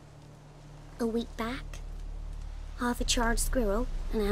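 A child answers in a high, excited voice.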